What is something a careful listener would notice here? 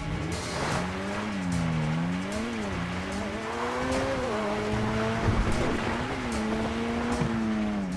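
A car engine hums and revs up and down.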